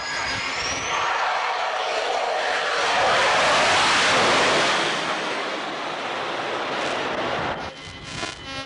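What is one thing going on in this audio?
A jet plane roars loudly as it passes close overhead.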